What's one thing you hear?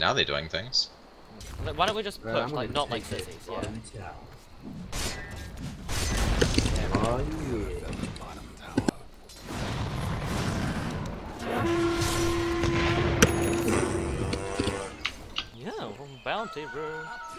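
Spell effects whoosh and crackle as fighters clash.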